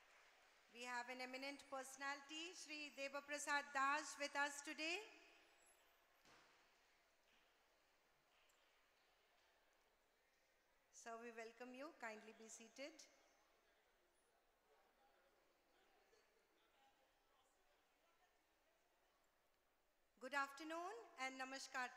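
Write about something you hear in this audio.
A woman speaks clearly through a microphone and loudspeaker in an echoing hall.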